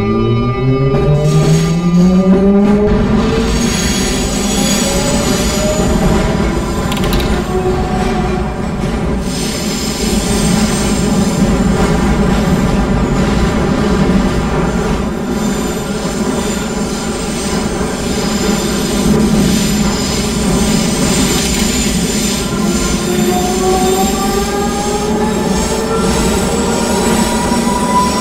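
A train rumbles steadily along rails through a tunnel.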